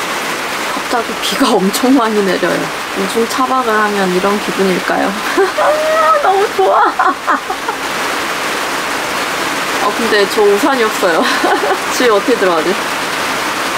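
A young woman speaks softly and cheerfully, close by.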